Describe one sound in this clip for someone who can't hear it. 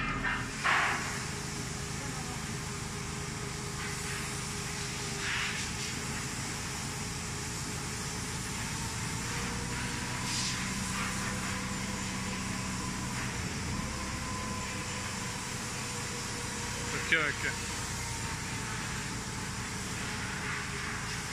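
A heavy machine engine rumbles steadily.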